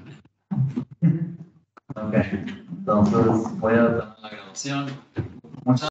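A man talks casually over an online call.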